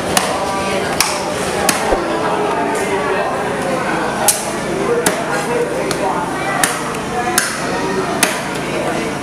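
A knife chops into fish flesh with sharp, repeated thuds.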